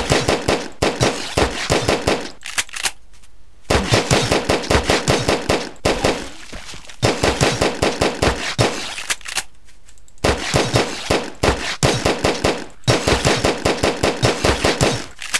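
A gun fires in rapid bursts of shots.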